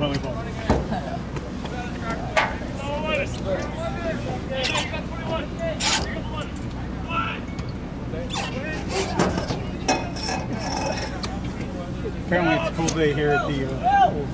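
Young players shout to each other across an open field outdoors.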